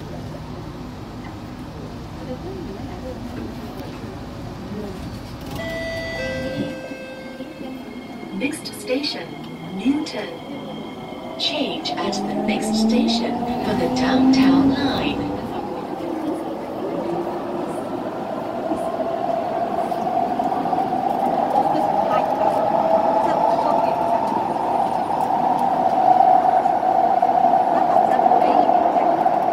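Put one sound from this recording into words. A train rumbles steadily from inside a carriage.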